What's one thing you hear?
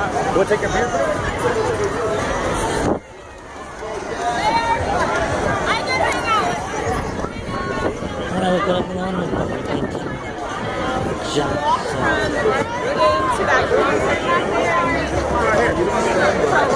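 A large outdoor crowd of men and women talks and shouts loudly all around, close by.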